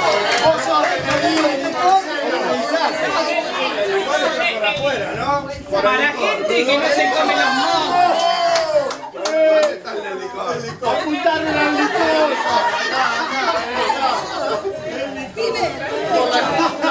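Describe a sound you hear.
Several people talk and chatter at once in a room nearby.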